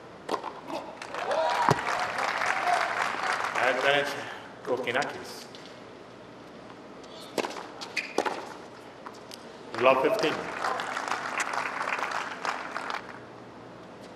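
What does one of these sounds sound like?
A crowd cheers and applauds in an open stadium.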